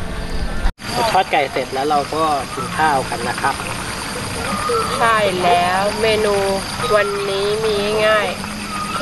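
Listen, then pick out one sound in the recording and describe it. A young woman answers a man.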